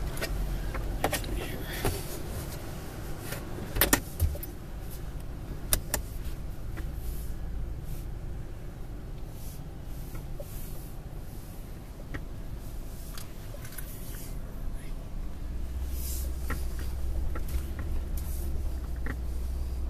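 A car engine rumbles low as the car drives slowly over grass.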